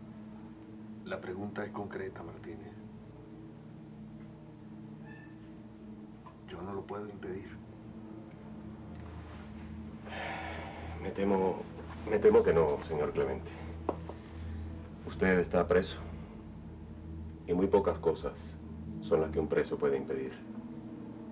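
A young man speaks quietly and hesitantly, close by.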